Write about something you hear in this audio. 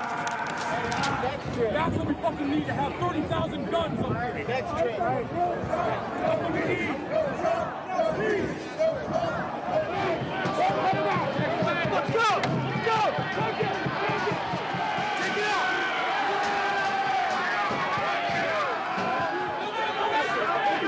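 A large crowd of men and women shouts and chants loudly outdoors.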